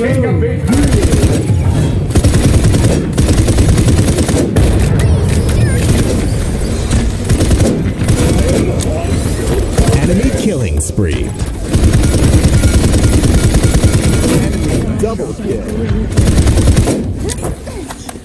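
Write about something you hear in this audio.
Game explosions and impacts boom and crackle.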